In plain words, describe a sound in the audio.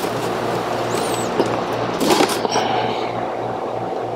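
Plastic wiring connectors click and rattle as a hand handles them.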